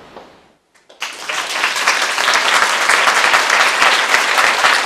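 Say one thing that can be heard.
An audience applauds loudly in a hall.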